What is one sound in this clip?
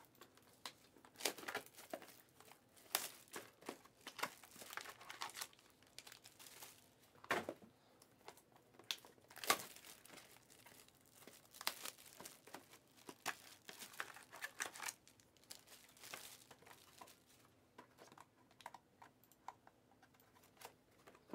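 Foil card wrappers crinkle and rustle as hands handle them.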